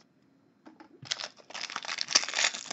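A foil wrapper crinkles and tears loudly.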